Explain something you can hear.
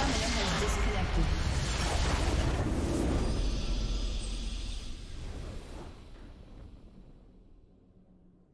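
A loud rumbling explosion bursts and slowly fades away.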